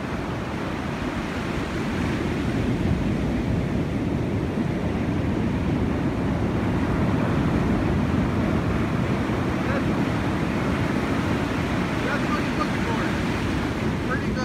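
Ocean waves crash and roll onto the shore.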